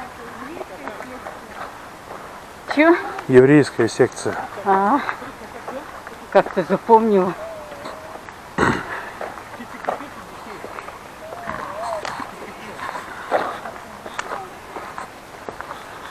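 Footsteps tread steadily on a paved path outdoors.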